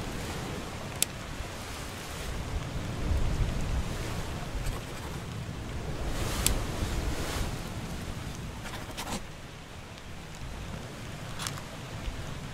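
Short menu clicks sound as choices are made.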